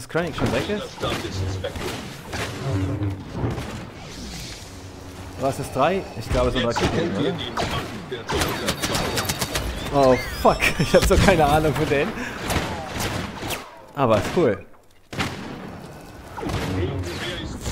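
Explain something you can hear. Blasters fire in rapid bursts of sharp zaps.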